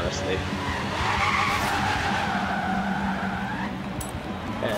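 Tyres screech across the pavement.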